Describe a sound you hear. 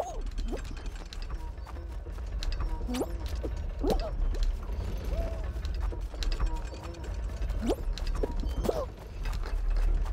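Light cartoonish footsteps patter quickly.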